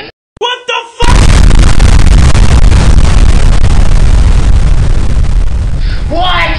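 A huge explosion roars with a deep, steady rumble.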